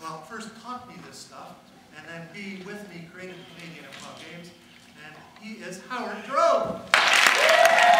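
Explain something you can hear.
A man speaks animatedly to an audience through a microphone in a large hall.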